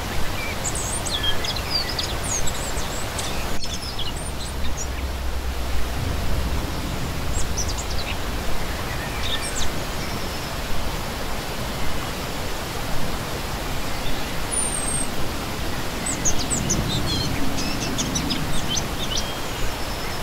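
A shallow stream rushes and splashes steadily over rocks.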